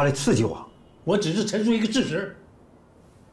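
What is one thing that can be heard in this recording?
A man speaks calmly and firmly nearby.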